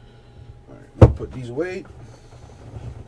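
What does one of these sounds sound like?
A cardboard box slides and knocks on a table.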